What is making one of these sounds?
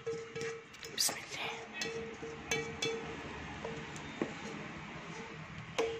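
A spatula scrapes food from a pan into a bowl.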